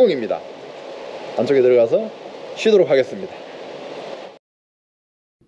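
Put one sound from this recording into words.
An elderly man talks cheerfully close by, outdoors.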